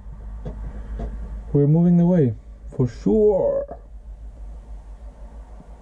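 A vehicle engine hums low and steady.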